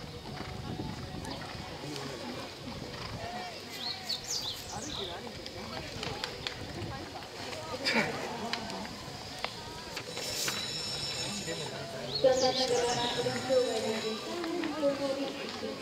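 A horse canters with soft hoof thuds on sand.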